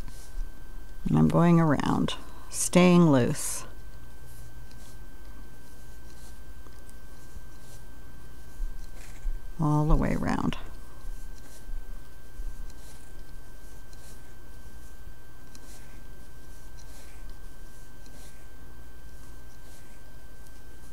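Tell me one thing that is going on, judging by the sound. A metal hook clicks and scrapes softly against plastic pegs.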